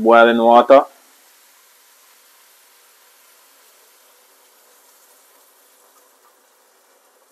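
Water pours into a pot.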